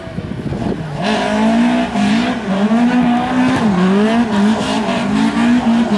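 Tyres skid and scrub on loose gravel as a car slides sideways.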